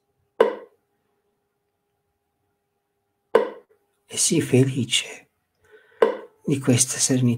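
A metronome clicks slowly and steadily.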